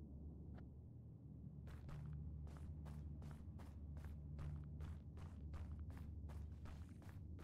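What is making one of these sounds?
A man talks quietly into a microphone.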